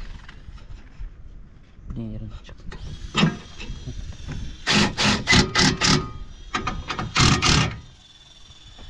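A cordless drill whirs in short bursts as it drives screws into metal.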